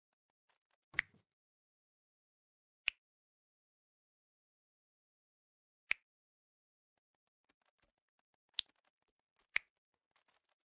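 Short interface clicks sound now and then.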